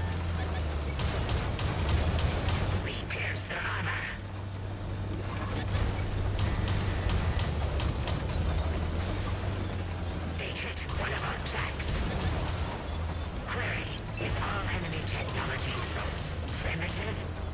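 Tank guns fire with sharp booming shots.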